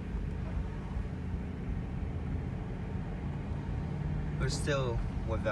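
A car engine hums and tyres rumble steadily on a paved road.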